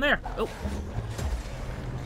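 A burst of magic explodes with a sharp crackle.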